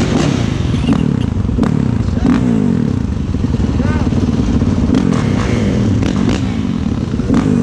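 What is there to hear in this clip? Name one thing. Dirt bike engines idle and rev loudly nearby.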